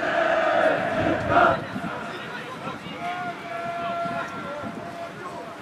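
Players call out to one another across an open outdoor pitch.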